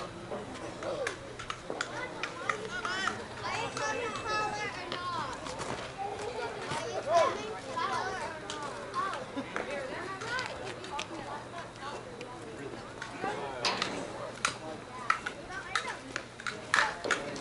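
Men and women talk and call out across an open field outdoors.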